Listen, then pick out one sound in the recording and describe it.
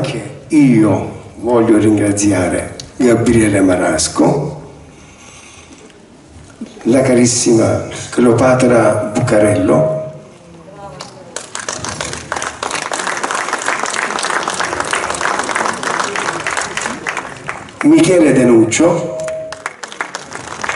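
An elderly man speaks into a microphone over a loudspeaker, with animation.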